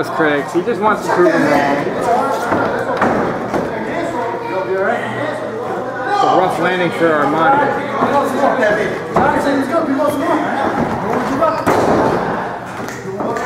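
Men talk and shout with animation in a large echoing hall.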